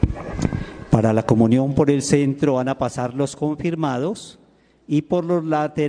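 A man speaks loudly and steadily through a microphone in a large echoing hall.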